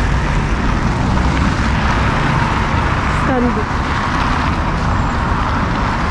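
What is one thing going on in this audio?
Cars drive past on a snowy street.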